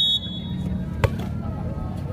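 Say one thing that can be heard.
A ball is struck hard with a sharp smack.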